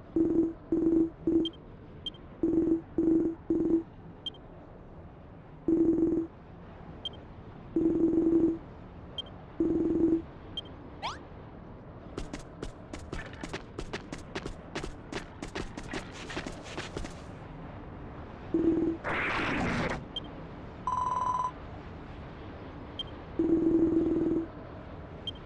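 Short electronic blips chirp in quick bursts.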